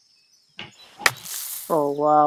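A golf club strikes a ball with a sharp smack.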